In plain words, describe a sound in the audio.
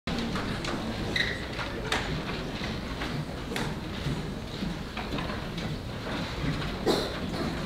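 A group of young singers sings together in a large echoing hall.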